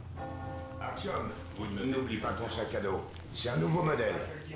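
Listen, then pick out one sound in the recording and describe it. A man speaks nearby in a calm, low voice.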